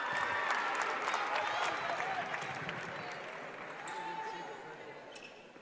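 Young women cheer and shout loudly in a large echoing arena.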